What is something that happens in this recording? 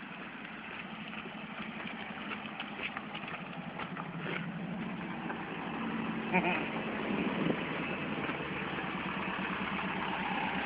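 A van's engine idles nearby with a low, steady rumble.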